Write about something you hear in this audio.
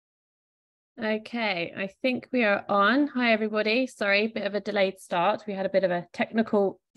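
A young woman speaks steadily over an online call.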